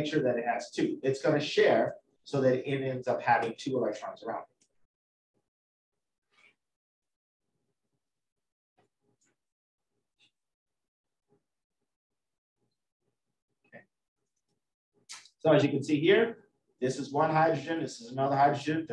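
A man lectures calmly through a microphone, with long pauses.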